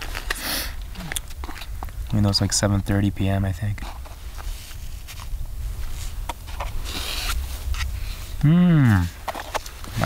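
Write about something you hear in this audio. A spoon scrapes and clinks inside a plastic food pouch.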